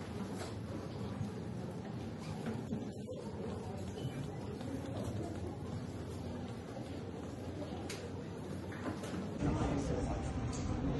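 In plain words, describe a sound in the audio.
People murmur quietly in a large, softly echoing hall.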